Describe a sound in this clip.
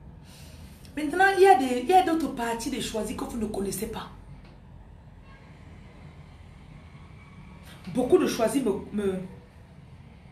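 A young woman speaks close to the microphone with animation, in short bursts.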